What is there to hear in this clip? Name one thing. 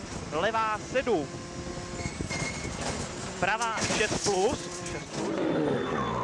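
A rally car engine revs hard through gear changes, heard from inside the car.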